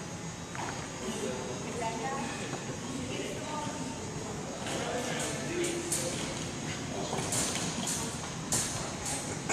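Young people talk and call out at a distance across an echoing gym.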